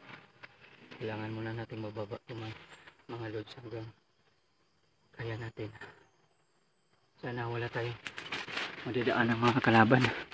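A man speaks up close in short bursts.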